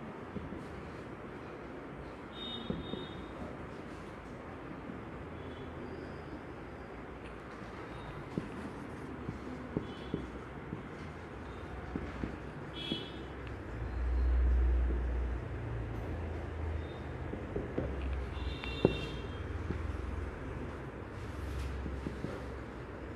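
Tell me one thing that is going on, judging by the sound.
A marker squeaks on a whiteboard as a man writes.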